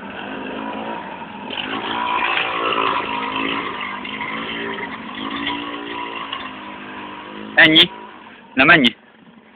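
A small moped engine putters and revs up and down close by.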